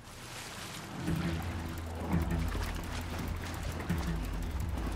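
Water sloshes and laps as a swimmer paddles through it.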